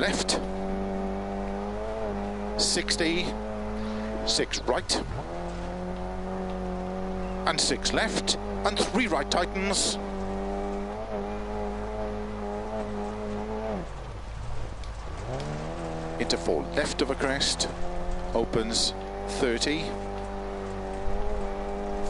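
A car engine drones at high revs, dipping briefly as it shifts gear.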